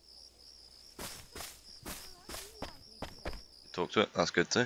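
Footsteps patter on a path.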